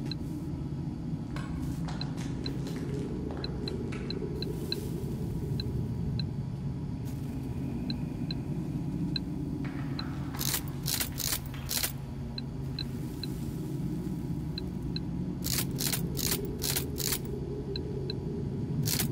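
Puzzle pieces click as they turn.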